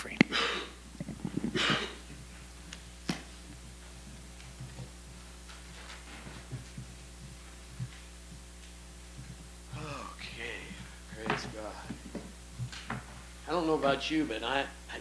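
A man speaks through a microphone in a room with a slight echo.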